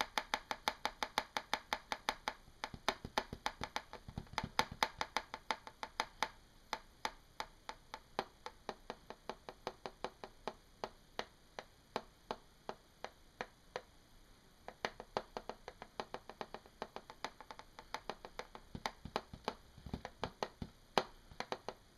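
Fingernails tap rapidly and crisply on a plastic surface.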